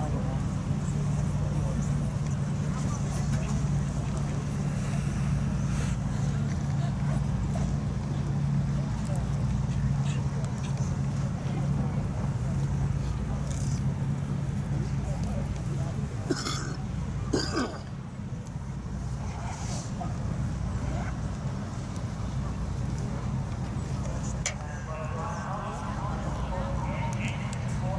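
A horse's hooves thud on soft ground at a canter.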